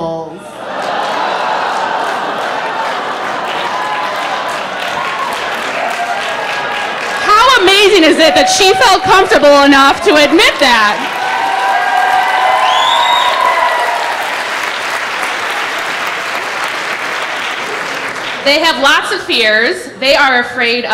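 A large audience claps and applauds steadily in a big hall.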